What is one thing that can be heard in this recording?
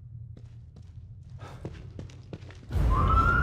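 Footsteps tread softly on a carpeted floor.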